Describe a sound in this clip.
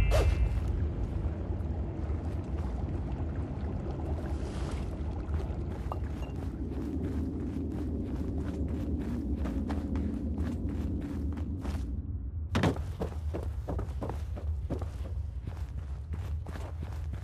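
Footsteps crunch on a gritty floor.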